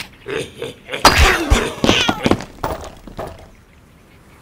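Wooden blocks crash and clatter as a structure topples.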